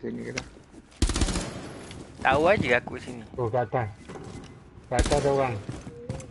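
A rifle fires short bursts of gunshots.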